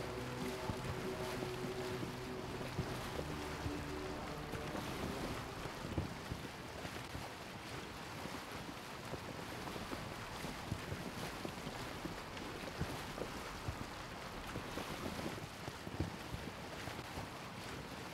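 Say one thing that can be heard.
Water splashes and rushes steadily against a boat's hull.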